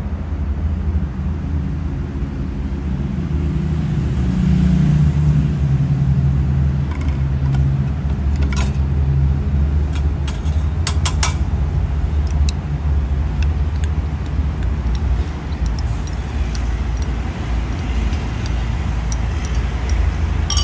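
Thick liquid pours into a glass.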